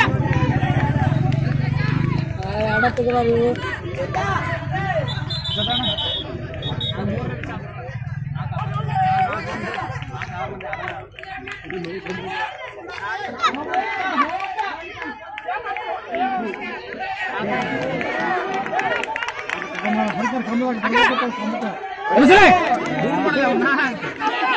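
Young players shout and call out as they run.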